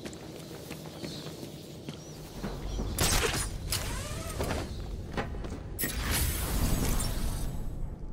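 A cape flaps and rushes through the air while gliding.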